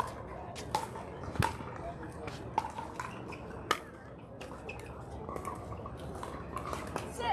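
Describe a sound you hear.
Paddles strike a plastic ball with sharp, hollow pops.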